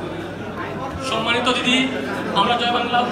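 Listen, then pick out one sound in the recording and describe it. A man speaks loudly into a microphone over loudspeakers in an echoing hall.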